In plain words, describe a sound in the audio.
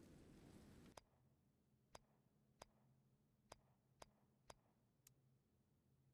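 Short, sharp interface clicks sound one after another.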